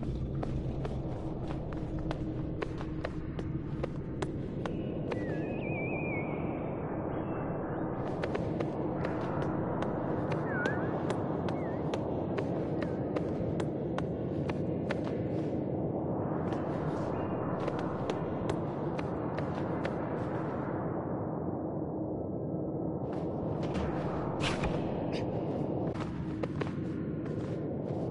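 Light footsteps patter quickly on stone.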